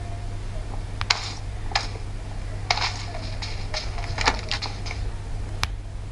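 Video game sound effects play from a smartphone speaker.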